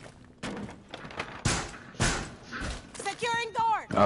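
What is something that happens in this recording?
Wooden boards crack and splinter as they are smashed.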